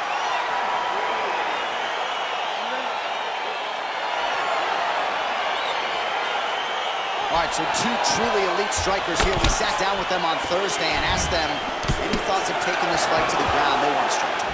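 A crowd murmurs and cheers steadily in a large arena.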